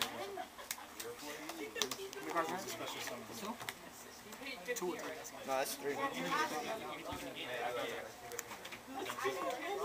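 Hands shuffle and tap plastic-sleeved cards.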